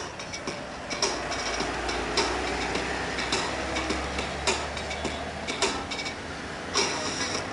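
A heavy truck rumbles past close by.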